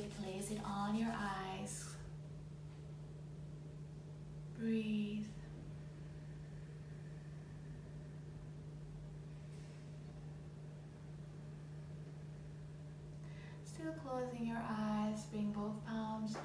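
A woman speaks calmly and softly, close by, with long pauses.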